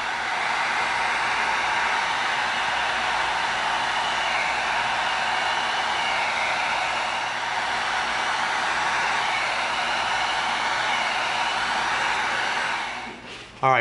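A heat gun blows with a steady roar.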